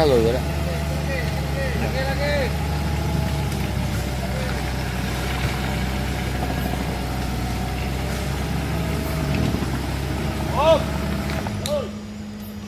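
An off-road vehicle's engine rumbles and strains in mud.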